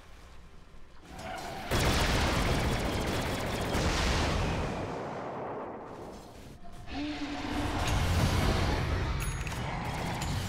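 Spells crackle and blast loudly in a game battle.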